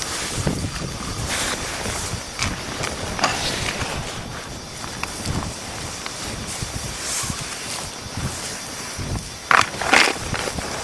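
Hand tools scrape and chip at loose flaky rock.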